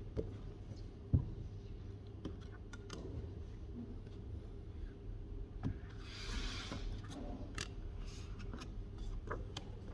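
Paper pages rustle as a book's pages are turned.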